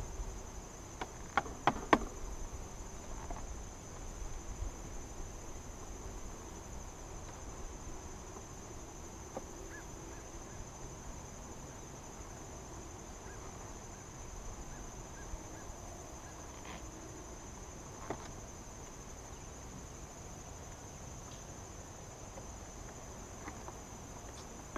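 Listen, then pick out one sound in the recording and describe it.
Wooden hive frames knock and scrape now and then.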